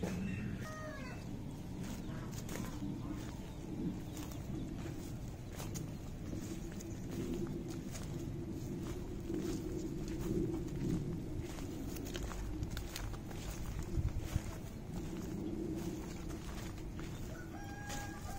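Footsteps crunch on soft ground.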